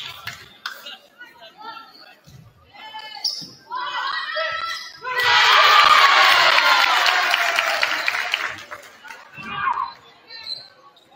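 Young women on a team shout and call out to each other.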